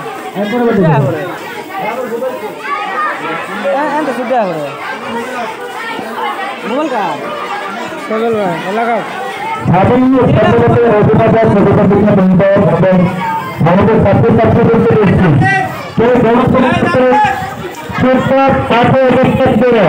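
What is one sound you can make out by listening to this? A crowd of young men talk and shout over each other.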